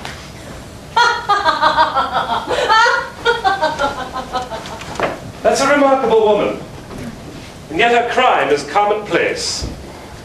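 A man speaks out loudly in a room with a slight echo.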